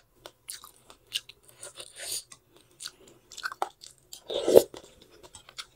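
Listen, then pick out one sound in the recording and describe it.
A woman chews and slurps noodle soup close to the microphone.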